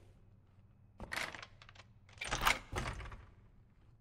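A metal slide bolt on a door is drawn back.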